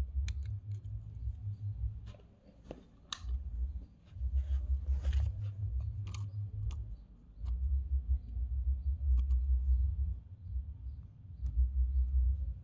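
Fingers click and tap against a phone's plastic parts.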